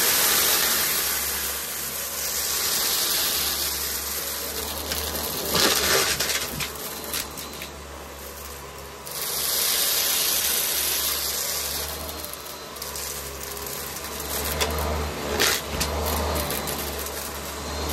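A vacuum cleaner rattles as it sucks up bits of grit and debris.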